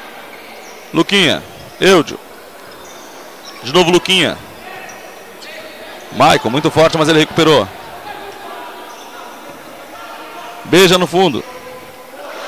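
Young men shout loudly across an echoing indoor hall.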